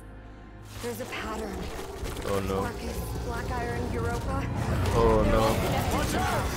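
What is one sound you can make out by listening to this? A young woman speaks urgently and close.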